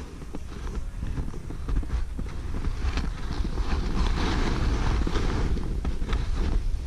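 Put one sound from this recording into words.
Skis scrape and crunch over hard snow.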